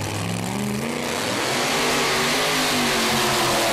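A drag racing engine revs hard and roars.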